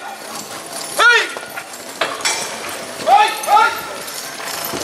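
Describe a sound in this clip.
Men shout loud, rising calls outdoors.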